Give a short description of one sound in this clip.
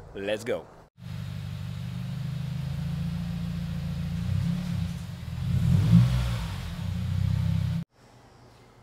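A car engine idles and revs with a deep rumble.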